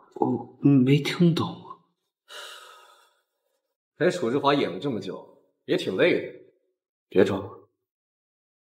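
A young man speaks calmly and close by.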